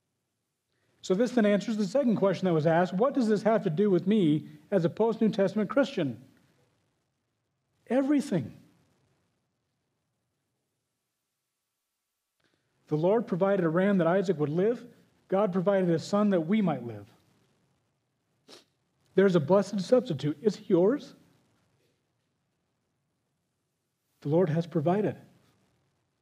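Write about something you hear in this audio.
A middle-aged man speaks with animation into a microphone, in bursts with pauses.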